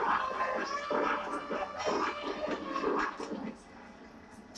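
Young girls sing together.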